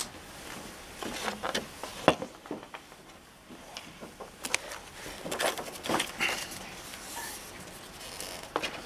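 Papers rustle and shuffle close by.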